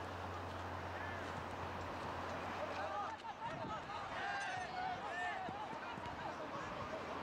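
Young players shout in the distance across an open outdoor field.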